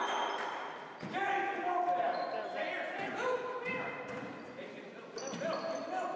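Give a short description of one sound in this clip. A basketball bounces on a hardwood floor.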